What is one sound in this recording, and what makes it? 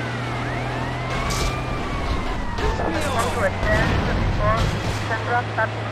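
A cannon shot booms with an explosion.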